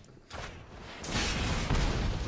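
A fiery game effect whooshes and crackles.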